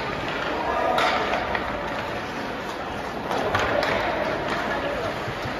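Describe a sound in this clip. Hockey sticks clack against the puck.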